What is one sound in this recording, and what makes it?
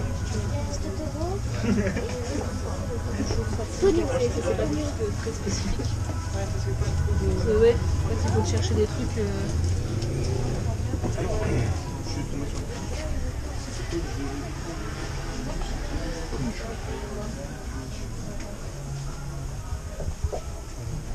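Several men and women murmur and talk nearby.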